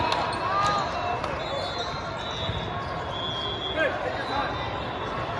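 A crowd chatters and echoes in a large hall.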